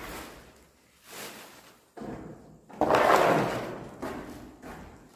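A plastic bin bag rustles as it is handled.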